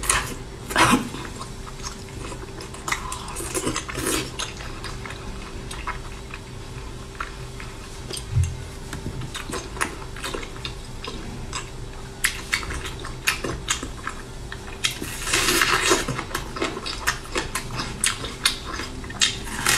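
A young woman chews food noisily and smacks her lips close to the microphone.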